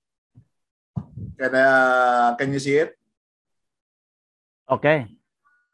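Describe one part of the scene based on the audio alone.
A man talks with animation through an online call.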